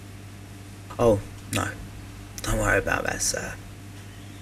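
An elderly man speaks in a low, rough voice.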